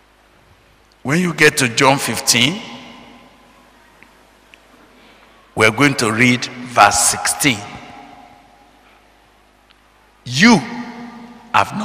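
A man speaks with animation into a microphone in a reverberant hall, in short bursts with pauses.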